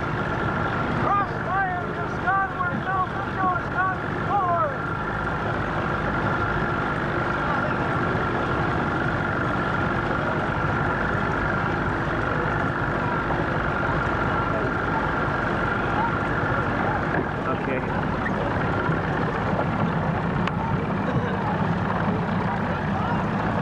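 A boat motor hums steadily close by.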